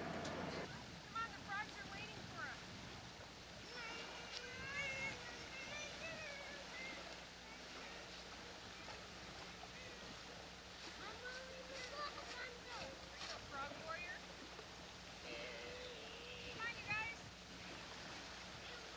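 Young children talk and call out nearby, outdoors.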